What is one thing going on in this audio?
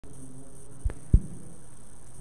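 A microphone thumps twice with dull knocks.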